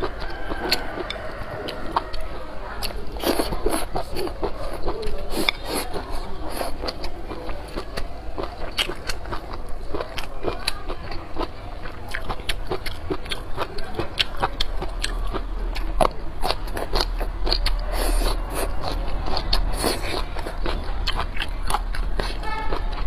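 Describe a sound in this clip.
A young woman slurps noodles and chews loudly, close to a microphone.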